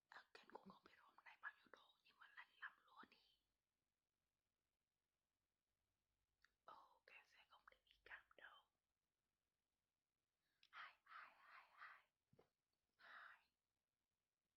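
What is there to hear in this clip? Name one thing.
A young man speaks softly and closely into a microphone, almost whispering.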